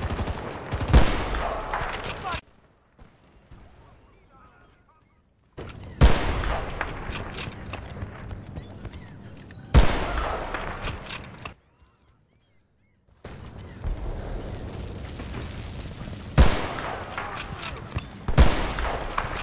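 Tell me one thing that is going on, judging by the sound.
A rifle fires loud single shots that boom and echo.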